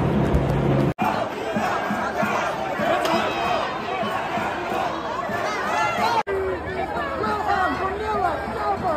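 A crowd of men and women shout and talk over one another nearby, outdoors.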